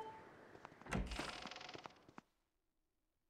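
A heavy wooden door thuds and creaks open.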